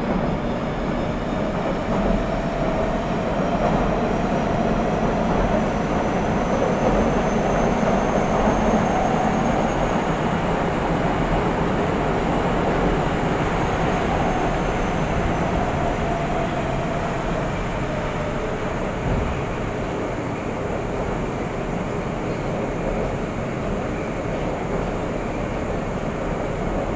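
An electric train idles with a steady hum.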